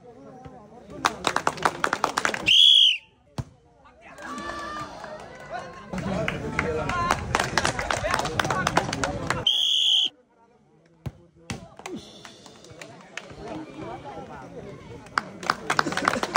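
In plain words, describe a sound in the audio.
A crowd outdoors cheers and claps.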